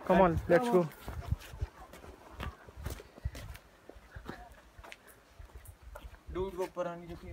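Footsteps scuff and tap on a stone path.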